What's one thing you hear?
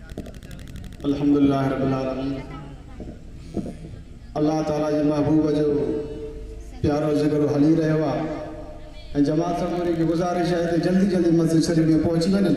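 A young man sings loudly into a microphone through loudspeakers.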